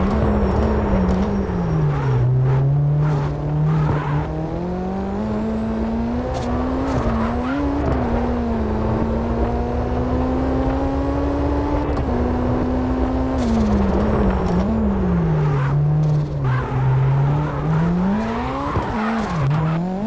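A car engine roars, revving up and down as the car accelerates and slows.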